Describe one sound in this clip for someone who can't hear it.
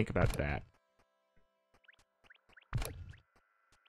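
Short game hit sounds thud as a weapon strikes.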